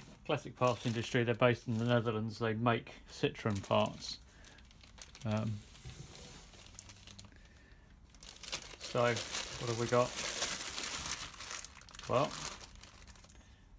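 A plastic bag crinkles and rustles as it is unwrapped.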